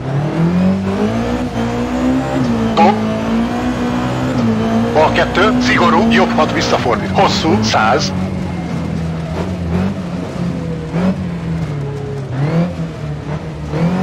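A car engine drones steadily, its pitch rising and falling with the throttle.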